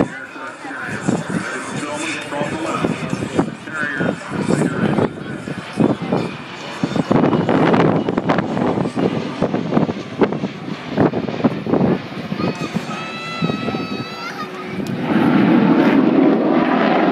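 A jet roars overhead.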